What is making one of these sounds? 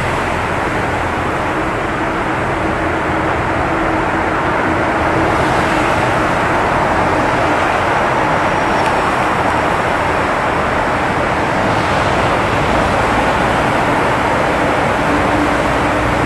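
Cars roar past, echoing loudly in a tunnel.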